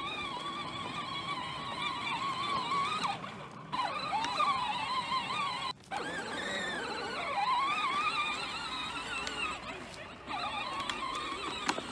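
Plastic wheels rumble over grass.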